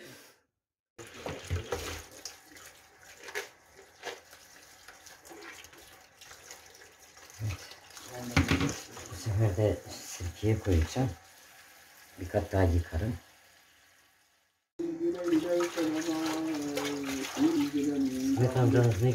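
Tap water runs and splashes into a bowl.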